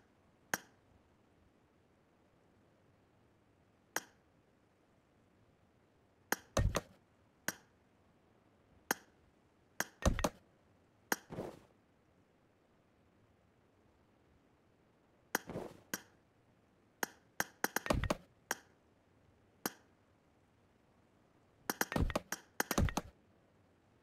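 Short sharp clicks and thuds come now and then as building pieces snap into place in a game.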